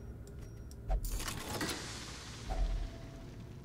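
A treasure chest bursts open with a rushing swell of sound.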